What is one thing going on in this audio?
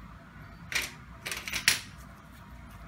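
A plastic reel body rustles and knocks as it is picked up.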